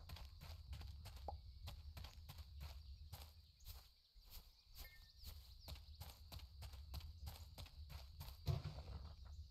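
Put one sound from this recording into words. Quick footsteps patter on dirt.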